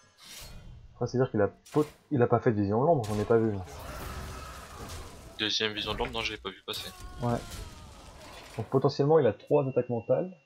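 A young man talks with animation into a headset microphone, close up.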